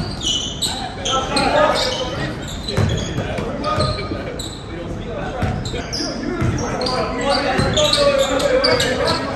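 Young men shout and call out to each other across the gym.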